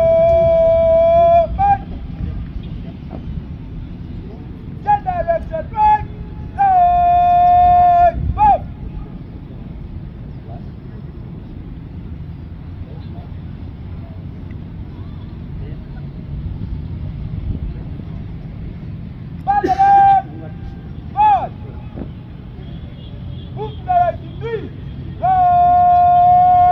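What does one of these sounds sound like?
A man shouts long drawn-out drill commands outdoors.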